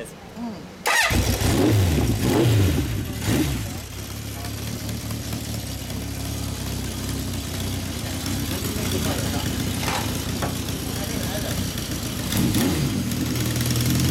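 A motorcycle engine starts with a roar and then idles with a low steady rumble.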